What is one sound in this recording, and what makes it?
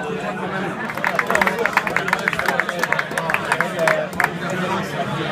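A crowd claps and cheers.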